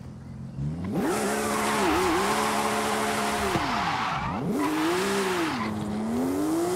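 Tyres screech and hiss as they spin on the road.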